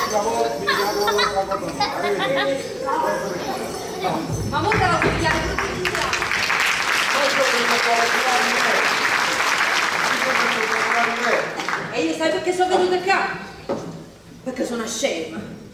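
Women speak and shout with animation.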